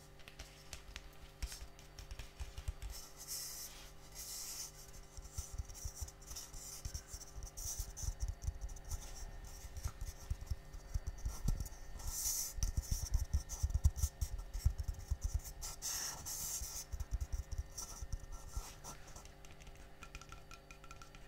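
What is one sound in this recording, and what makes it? Water sloshes and splashes as a dish is washed in a sink.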